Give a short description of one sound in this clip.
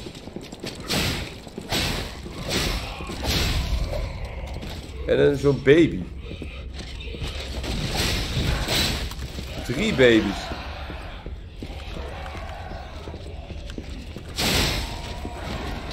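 Heavy weapon blows strike and thud again and again.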